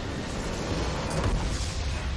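A large structure explodes with a deep rumbling blast.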